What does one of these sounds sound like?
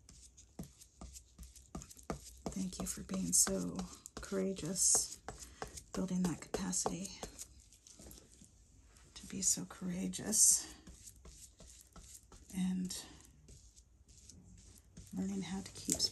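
A brush dabs and swishes softly on a wet surface.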